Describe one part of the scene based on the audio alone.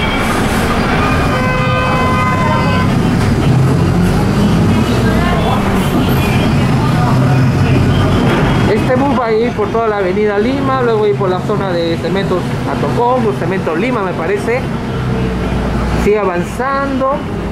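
A vehicle engine rumbles steadily while driving along a street.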